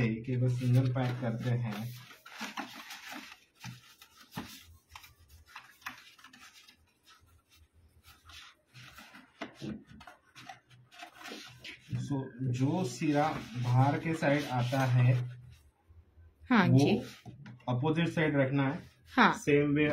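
Stiff cardboard rustles and creases as it is folded.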